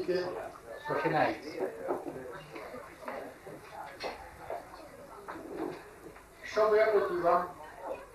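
Guests chatter at tables in the background.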